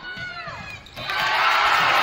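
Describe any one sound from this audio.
A crowd cheers and claps loudly in an echoing gym.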